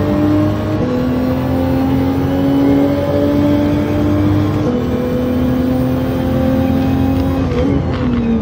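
A racing car engine roars at high revs, shifting up through the gears.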